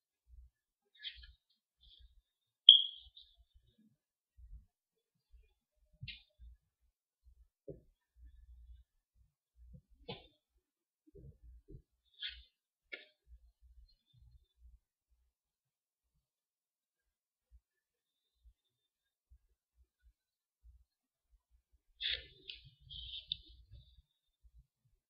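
Playing cards rustle and slide softly between hands.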